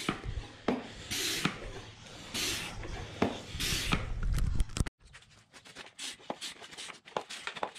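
A hand pump clicks and knocks as its handle moves.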